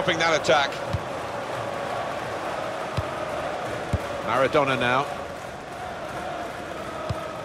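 A football is kicked with short dull thuds.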